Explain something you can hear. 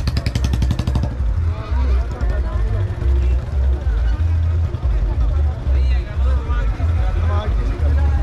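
A motorbike engine runs close by.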